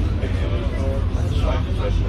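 A passing bus roars by in the opposite direction.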